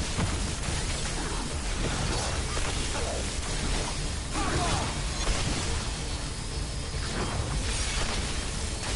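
An energy weapon fires in rapid crackling bursts.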